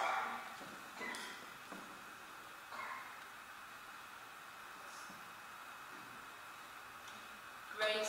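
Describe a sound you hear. A woman speaks calmly at a distance in an echoing hall.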